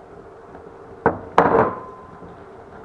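A ceramic bowl knocks against a metal pot.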